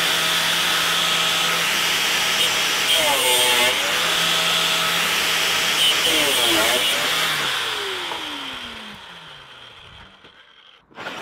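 An angle grinder whines loudly as it cuts through metal, then winds down.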